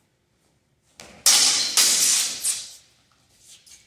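Steel swords clash and scrape together in an echoing hall.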